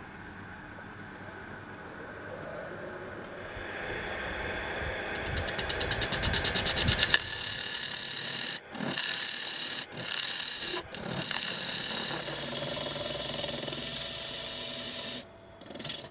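A lathe motor hums and whirs steadily.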